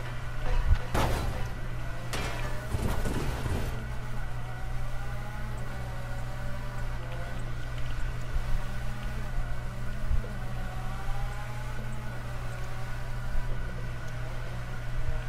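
Tyres squeal as a sports car slides sideways.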